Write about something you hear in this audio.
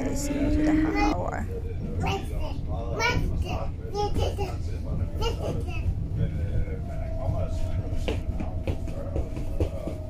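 A train rumbles steadily underway.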